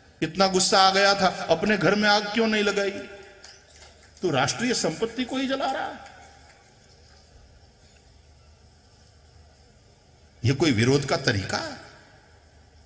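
An elderly man speaks into a microphone in measured, emphatic bursts, with pauses between them.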